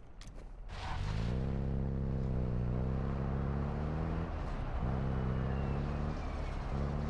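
A vehicle engine hums steadily as it drives along.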